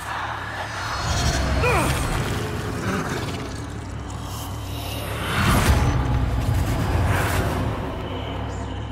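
A deep magical whoosh swells and surges.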